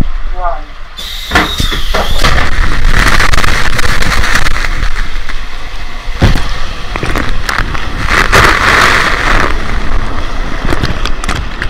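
Water rushes and splashes around a rider sliding down a waterslide.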